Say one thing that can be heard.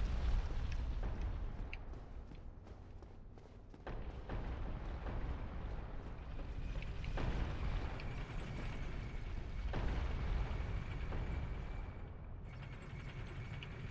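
Armoured footsteps clank on stone and metal grates.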